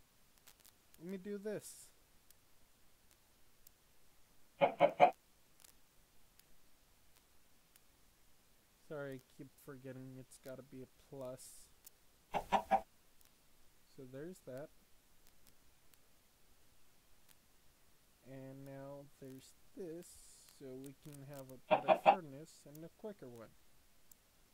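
A young man talks calmly into a close microphone, in short bursts.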